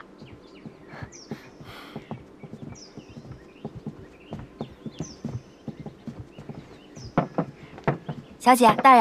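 Footsteps tap softly on a wooden floor.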